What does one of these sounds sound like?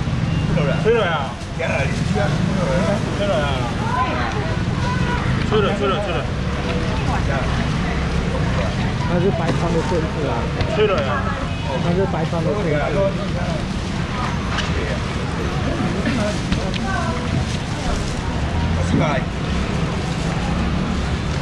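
Plastic baskets rustle and clatter.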